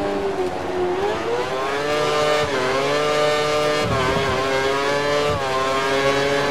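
A racing car engine screams at high revs, rising and falling in pitch as the gears change.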